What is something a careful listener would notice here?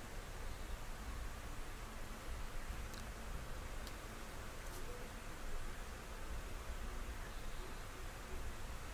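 A man speaks calmly through a remote broadcast link.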